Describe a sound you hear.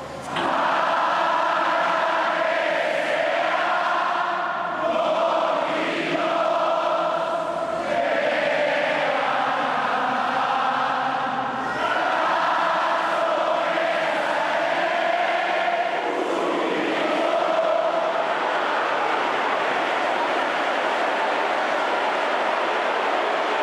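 A large crowd sings loudly together in a big echoing hall.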